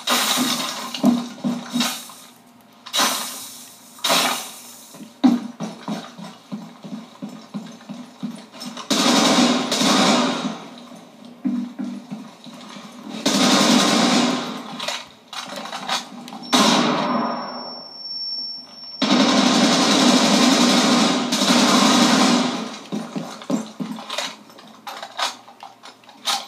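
Footsteps from a video game sound through a television speaker.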